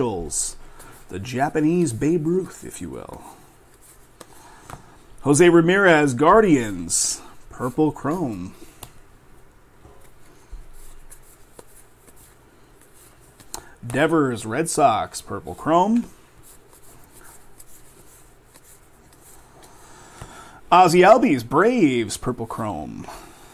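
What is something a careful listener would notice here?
Stiff cards slide and rustle as they are shuffled by hand.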